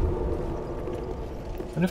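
Flames roar and crackle close by.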